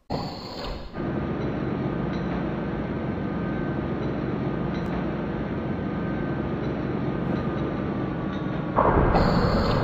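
A lift platform hums steadily as it moves.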